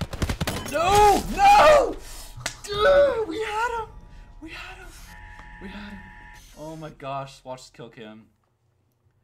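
A young man exclaims loudly and laughs close to a microphone.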